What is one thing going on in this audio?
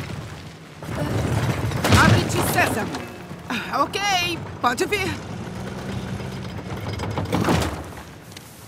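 A heavy stone gear grinds as a crank is turned.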